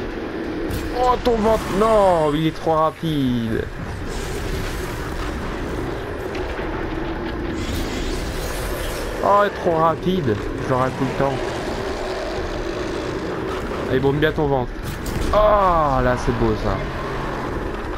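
A large mechanical beast roars in long, wavering cries that fall in pitch.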